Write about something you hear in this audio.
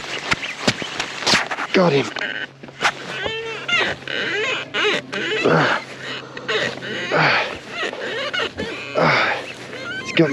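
A fishing reel clicks and whirs as its handle is turned.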